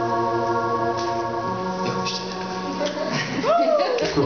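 An electric guitar rings out with a sustained chord.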